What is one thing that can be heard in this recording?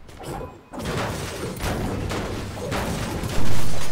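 A pickaxe strikes the metal body of a car with clanging hits.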